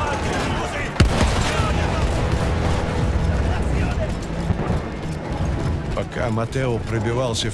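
An explosion booms in the distance.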